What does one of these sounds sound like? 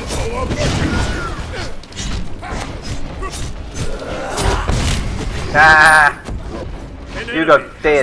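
Game combat effects crackle and whoosh.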